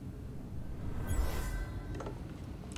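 A mechanism releases with a short whoosh and hiss.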